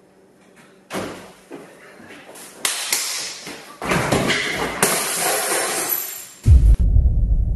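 Two men scuffle and thud against a wall.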